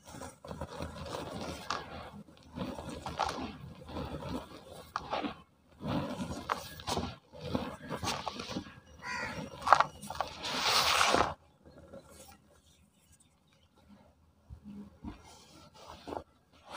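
Hands scoop and squeeze dry powdery sand, which rustles and crunches.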